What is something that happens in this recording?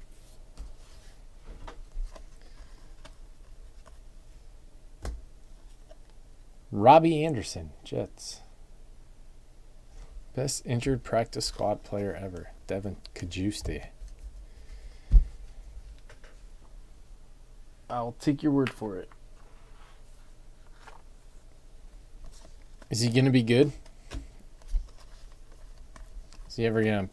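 Trading cards rustle and flick softly as they are handled.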